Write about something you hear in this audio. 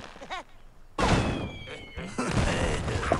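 A wooden structure crashes and clatters as it is struck.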